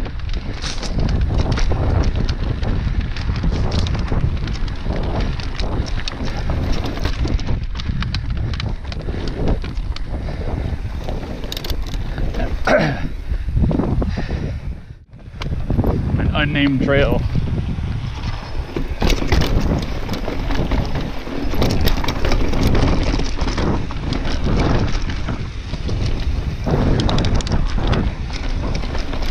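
Wind rushes loudly past a bicycle rider outdoors.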